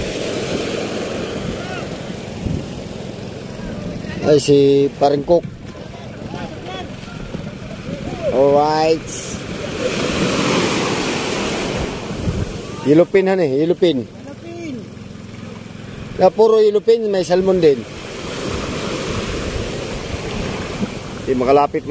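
Waves wash and break on the shore.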